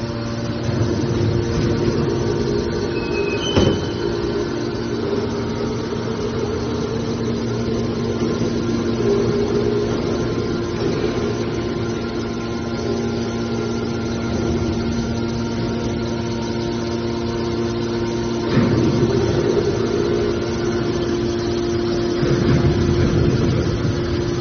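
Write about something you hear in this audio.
The electric motor of a hydraulic power unit hums steadily.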